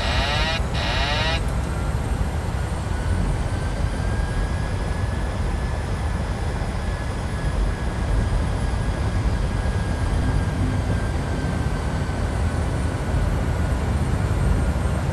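A jet engine drones steadily with a deep rumble.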